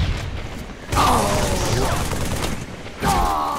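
Gunfire bursts in a video game battle.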